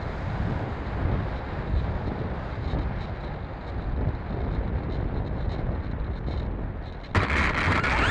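Small wheels rumble over tarmac.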